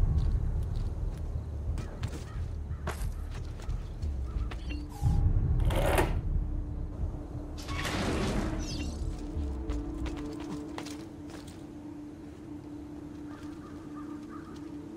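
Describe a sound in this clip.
Footsteps and scrambling thuds sound on stone.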